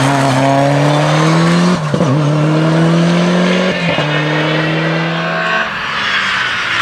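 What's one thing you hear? A rally car engine revs hard and shifts gears nearby.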